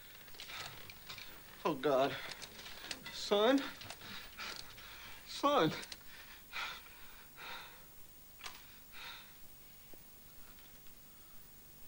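A man speaks with animation, close by.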